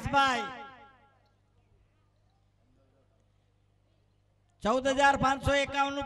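An elderly man sings into a microphone over loudspeakers, holding long notes.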